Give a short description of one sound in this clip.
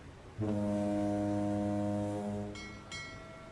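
A ship's horn blows a long, deep blast.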